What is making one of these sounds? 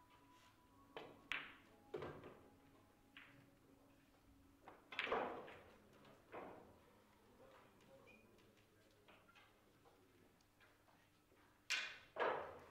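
A cue strikes a billiard ball with a sharp tap.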